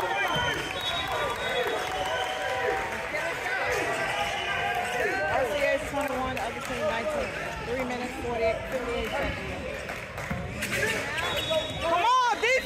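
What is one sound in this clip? Sneakers squeak sharply on a wooden court, echoing in a large hall.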